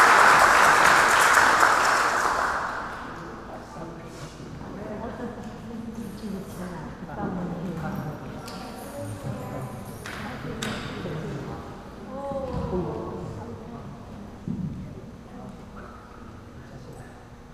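A dancer's feet thump and slide on the floor.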